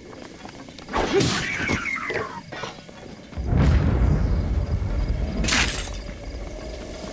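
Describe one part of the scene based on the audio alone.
A sword clashes against an enemy in a burst of fighting.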